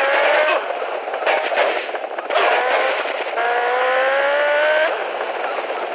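A motorcycle engine revs and whines as it speeds up through the gears.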